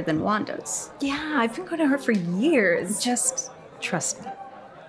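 A woman speaks in agreement.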